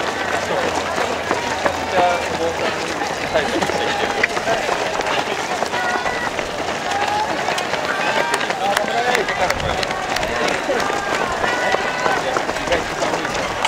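Many runners' feet patter on the road.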